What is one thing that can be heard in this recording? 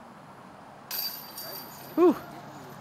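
A disc clanks into metal chains, which rattle briefly.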